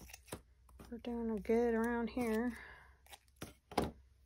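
Scissors snip through coarse fabric.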